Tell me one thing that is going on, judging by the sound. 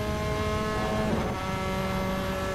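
A racing car engine drops in pitch as it shifts up a gear.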